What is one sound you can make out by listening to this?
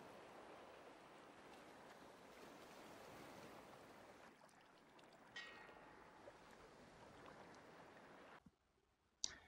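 Gentle waves wash softly onto a shore.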